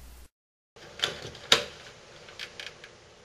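A plastic light cover knocks and clicks as hands handle it.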